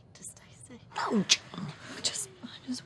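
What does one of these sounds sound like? An elderly woman speaks briefly.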